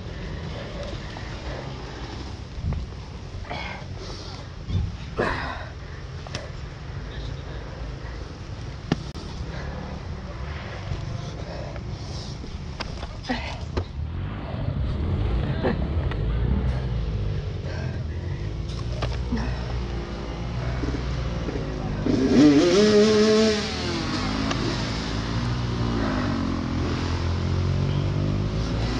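A dirt bike engine runs.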